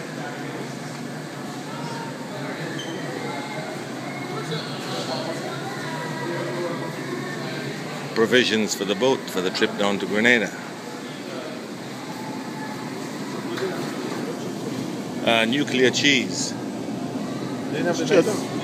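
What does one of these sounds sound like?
Shoppers murmur quietly in the background.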